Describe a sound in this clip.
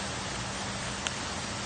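A putter taps a golf ball with a short click.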